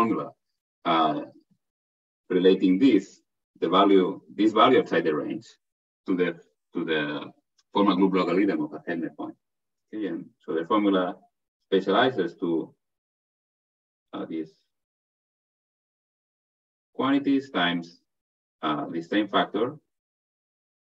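A man speaks calmly and steadily through an online call, pausing often.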